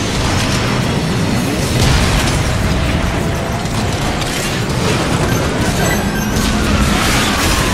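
Laser blasts zap repeatedly.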